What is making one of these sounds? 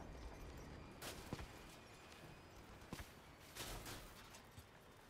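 Guns fire in short bursts.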